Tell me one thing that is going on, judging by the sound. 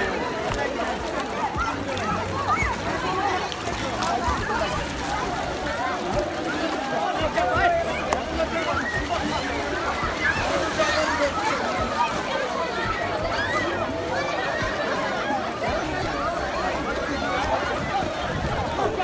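A large crowd of children chatter and shout.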